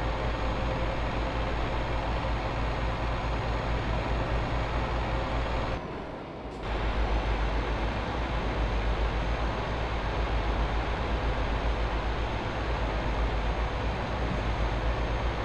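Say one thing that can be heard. A diesel truck engine drones while cruising on a motorway.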